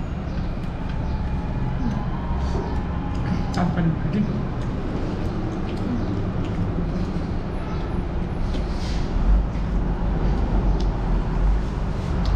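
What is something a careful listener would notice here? A man chews food noisily, smacking his lips close by.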